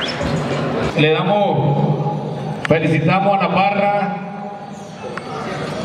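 A man speaks into a microphone, heard through a loudspeaker.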